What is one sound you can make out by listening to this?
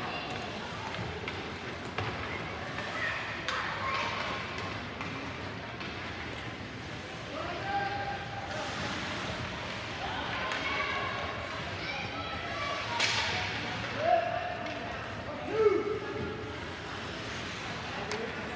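Skate blades scrape across ice in a large echoing arena.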